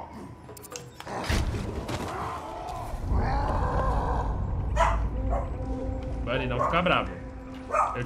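A large creature roars and growls.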